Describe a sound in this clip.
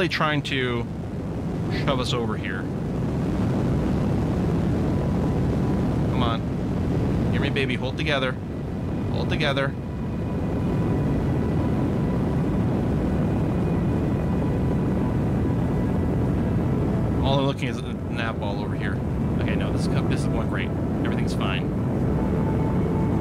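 A rocket engine roars steadily.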